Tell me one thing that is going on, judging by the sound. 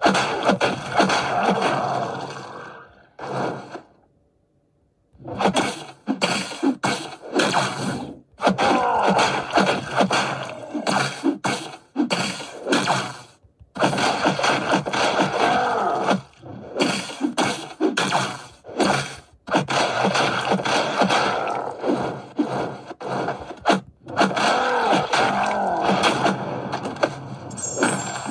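Punches and heavy thuds from a fighting game play through a small speaker.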